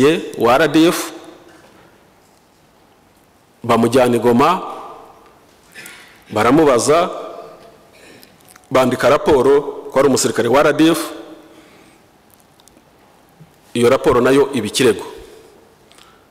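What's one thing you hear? A middle-aged man speaks calmly into a microphone in short phrases, with pauses.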